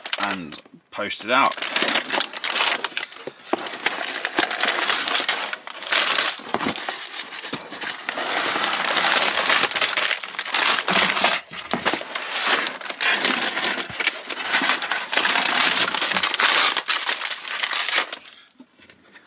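Plastic bags crinkle and rustle as they are handled.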